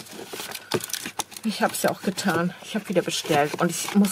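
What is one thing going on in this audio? A bone folder scrapes along a paper crease.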